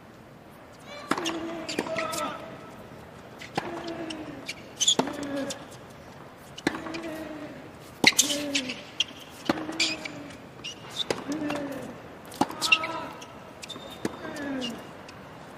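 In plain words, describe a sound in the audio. Tennis rackets strike a ball back and forth with sharp pops.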